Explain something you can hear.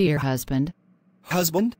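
A young woman speaks warmly.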